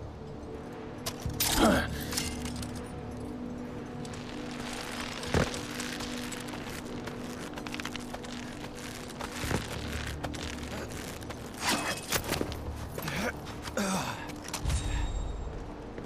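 A climbing rope creaks and gear thumps as someone hauls up a rock face.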